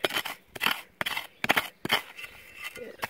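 A hand digging tool stabs and scrapes into soil.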